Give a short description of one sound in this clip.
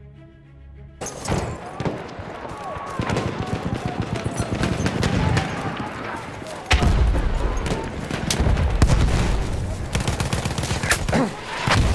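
Rifle shots crack repeatedly.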